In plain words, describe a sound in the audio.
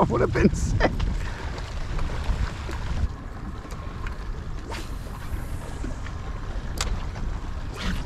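Small waves lap and splash against a boat's hull.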